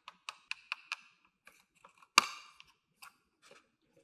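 A plastic toy door snaps shut.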